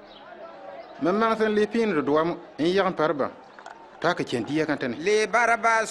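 An elderly man speaks in reply with animation.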